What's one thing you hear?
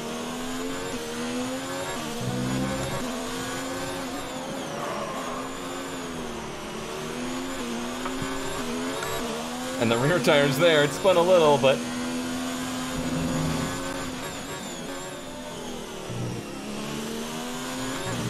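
A racing car engine roars, its pitch rising and falling as it speeds up and changes gear.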